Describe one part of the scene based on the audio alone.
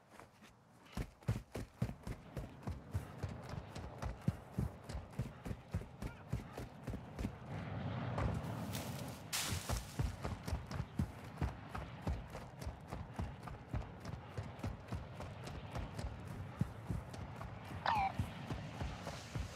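Footsteps run quickly over dry ground.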